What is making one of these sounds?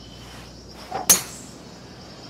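A golf club strikes a ball with a sharp whack.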